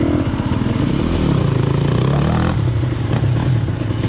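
Water splashes under motorcycle tyres.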